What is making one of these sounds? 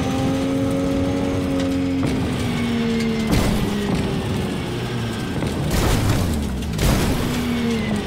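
Tyres crunch and thump over rough dirt.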